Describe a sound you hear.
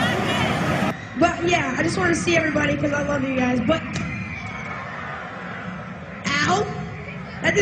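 A young boy sings through a microphone and loudspeakers.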